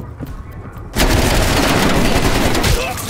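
Gunshots crack close by in a quick burst.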